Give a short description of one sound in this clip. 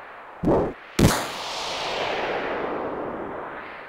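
A magical burst flares up and swooshes away.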